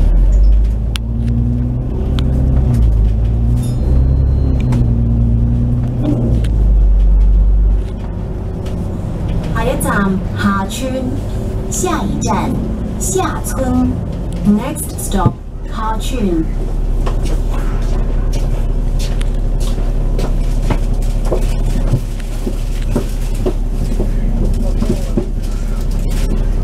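Traffic passes by on the road outside.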